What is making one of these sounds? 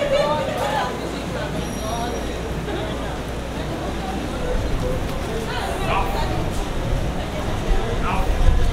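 Boots tramp on pavement as a column marches.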